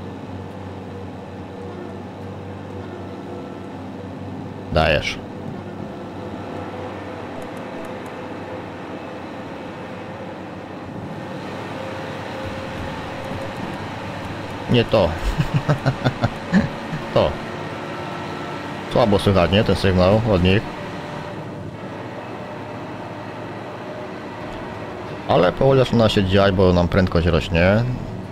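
A train's engine rumbles steadily inside a cab.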